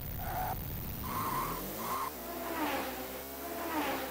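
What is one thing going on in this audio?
A racing car engine revs up as it accelerates.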